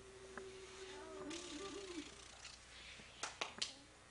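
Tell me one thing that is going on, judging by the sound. A baby coos and babbles close by.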